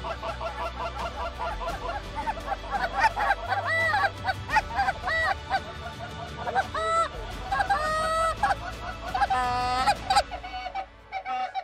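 A flock of geese honks loudly and keeps calling.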